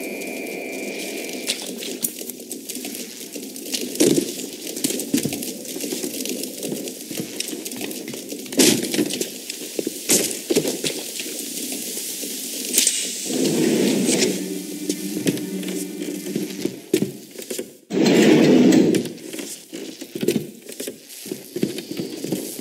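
Electricity crackles and sizzles softly, close by.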